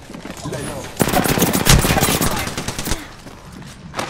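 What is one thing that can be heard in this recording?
Rapid automatic gunfire rattles.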